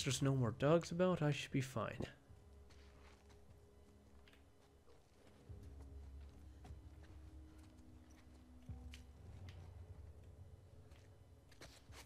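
Soft footsteps creep slowly across a floor.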